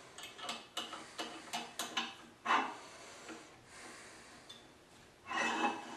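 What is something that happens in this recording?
Metal clicks and rattles as a small vise is adjusted by hand.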